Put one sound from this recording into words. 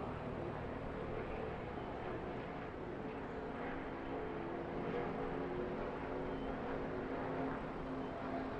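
Racing truck engines roar loudly as a pack speeds past.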